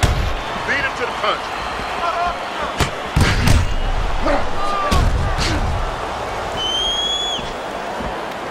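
A crowd murmurs and cheers steadily.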